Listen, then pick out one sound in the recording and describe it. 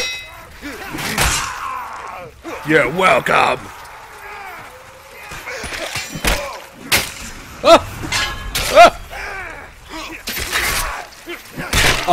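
Heavy weapons swing and strike with sharp impacts.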